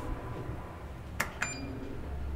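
A finger clicks an elevator button.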